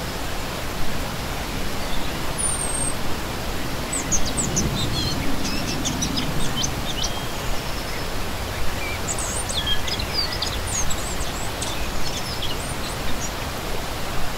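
A shallow stream rushes and splashes steadily over rocks.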